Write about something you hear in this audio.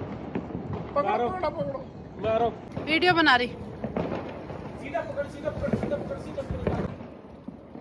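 A woman calls out with excitement nearby.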